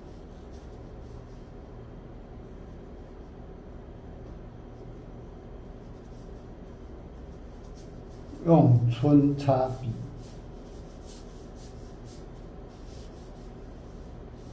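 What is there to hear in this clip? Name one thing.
A brush sweeps softly across paper.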